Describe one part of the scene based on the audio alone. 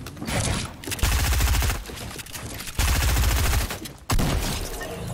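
Gunfire rattles in loud, rapid bursts.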